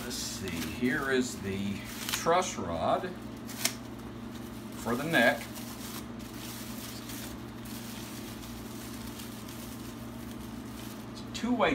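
Paper crinkles and rustles in hands.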